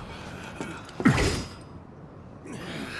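A heavy sword whooshes through the air.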